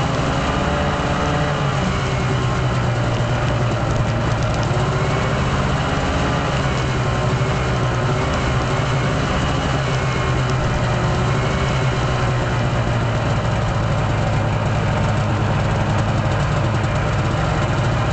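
Wind rushes past the microphone.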